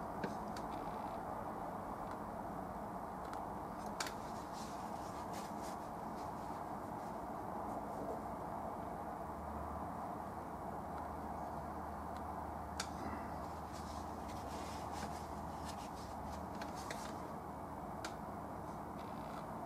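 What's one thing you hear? A brush strokes softly across canvas.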